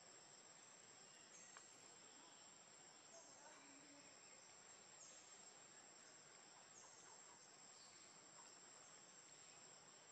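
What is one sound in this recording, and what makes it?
A baby monkey suckles softly with faint wet sounds.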